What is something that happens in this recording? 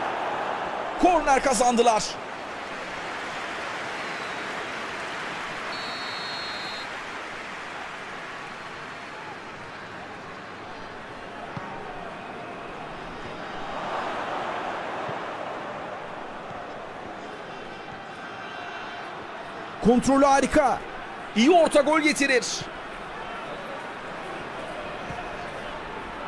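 A stadium crowd murmurs and roars steadily.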